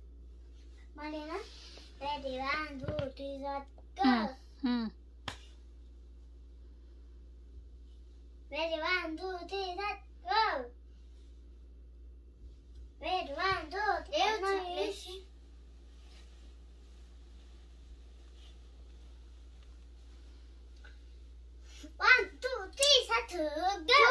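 A young child speaks with animation, up close.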